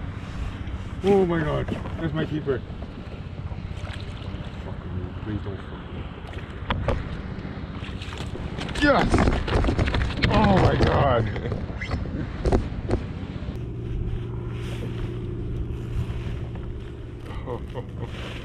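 A young man talks with excitement close by.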